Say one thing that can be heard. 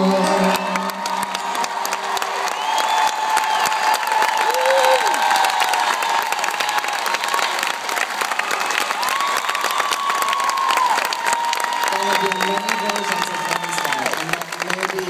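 A woman sings through a microphone over the band.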